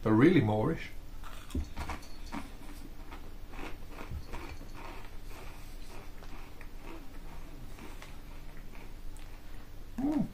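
A man crunches a crisp while chewing.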